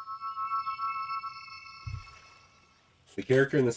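A bright magical chime rings out and fades away.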